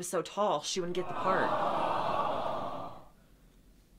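A woman speaks with concern.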